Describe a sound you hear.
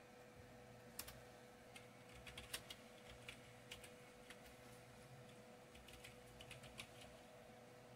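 Keys clack on a computer keyboard in short bursts.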